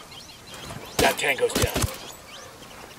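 Suppressed gunshots crack in quick succession.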